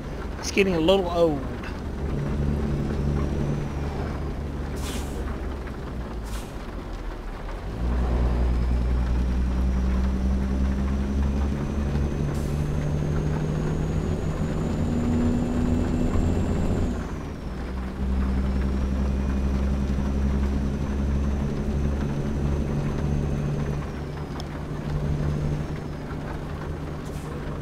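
A truck engine drones steadily, dropping briefly between gear changes.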